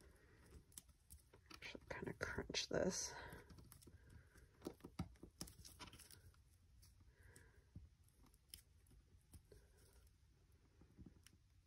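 Paper crinkles and rustles under fingers.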